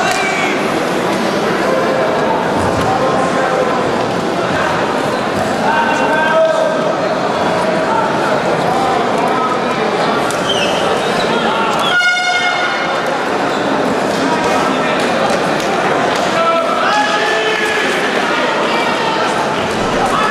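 A large crowd chatters steadily in a big echoing hall.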